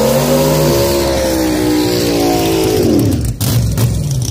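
Car tyres spin and squeal on the pavement.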